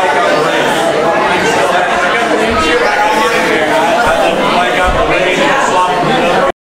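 A crowd of men and women chatter loudly nearby.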